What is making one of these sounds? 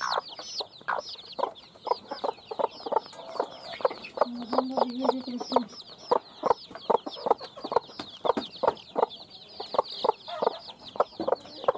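Many chicks peep loudly and constantly, close by.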